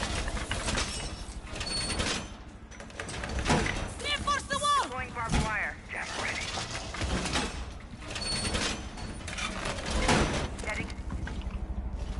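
A heavy metal panel is dragged and clanks into place against a wall.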